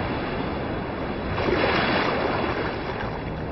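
Waves lap gently at the shore of a lake.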